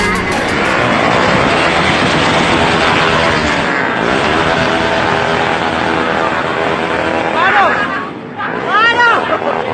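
Motorcycle engines roar and rev loudly.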